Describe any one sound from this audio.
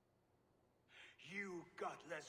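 A man shouts angrily, close by.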